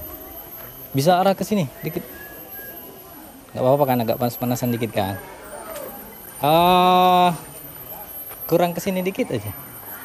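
A young woman talks with animation close by, outdoors.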